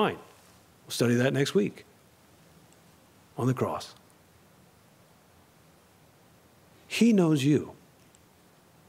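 A man speaks with animation into a microphone, in short phrases with pauses.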